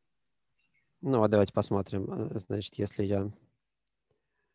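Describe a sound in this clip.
A man speaks calmly through a microphone, as in an online call.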